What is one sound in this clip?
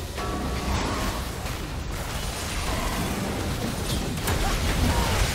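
Magic spells whoosh, crackle and clash in rapid bursts.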